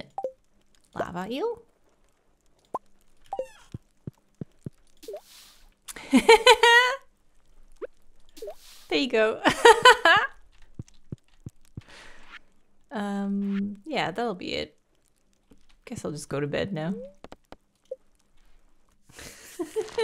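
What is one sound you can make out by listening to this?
A young woman talks with animation into a microphone, close by.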